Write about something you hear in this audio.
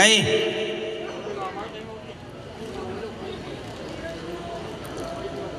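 A middle-aged man speaks calmly into a microphone, heard through loudspeakers.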